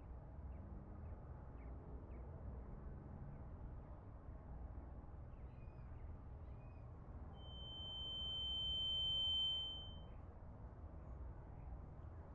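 An acoustic guitar is strummed softly.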